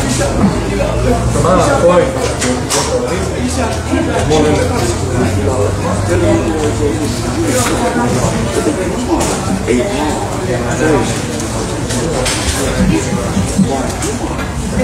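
Several adult men and women chat close by in an overlapping murmur.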